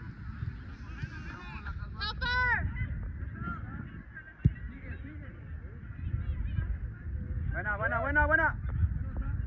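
Young women shout across an open field.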